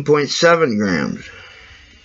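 A marker squeaks softly on paper.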